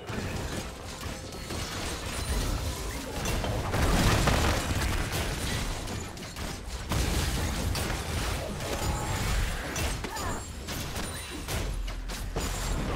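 Video game battle effects clash, zap and burst in quick succession.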